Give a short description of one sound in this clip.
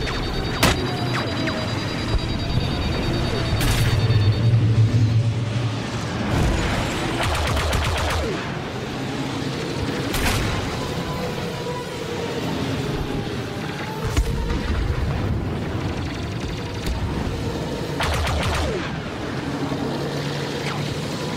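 A starfighter's engines roar and whine steadily.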